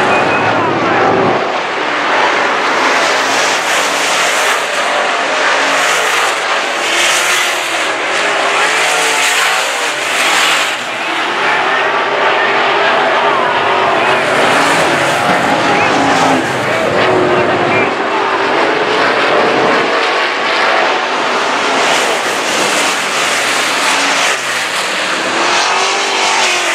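Race car engines roar loudly around a dirt track outdoors.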